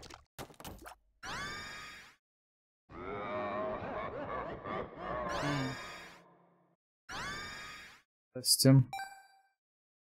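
Game sound effects chime and pop.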